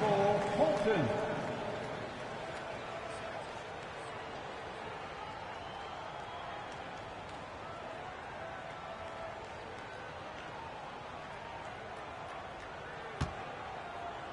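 A large crowd murmurs and cheers.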